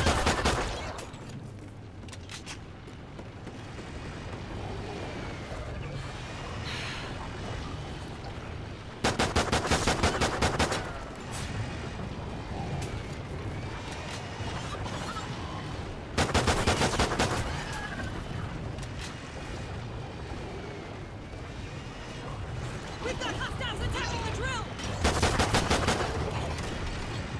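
Rapid pistol shots fire in quick bursts.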